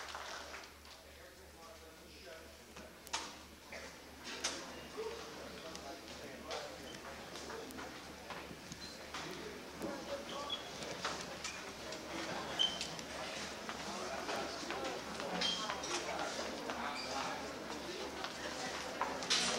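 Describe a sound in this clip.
A crowd of young people and adults chatters in a large echoing hall, growing louder.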